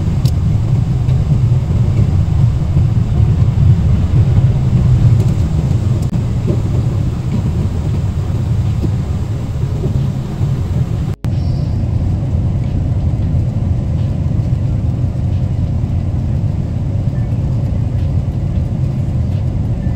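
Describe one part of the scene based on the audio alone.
A jet airliner's engines drone steadily inside the cabin.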